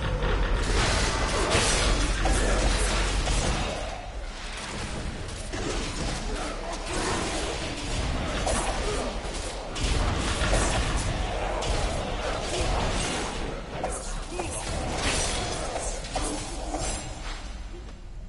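Spell effects crackle and burst during a fight.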